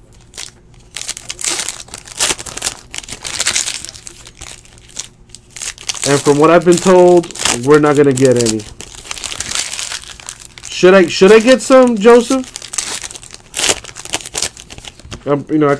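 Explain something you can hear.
Foil wrappers crinkle and tear as card packs are opened.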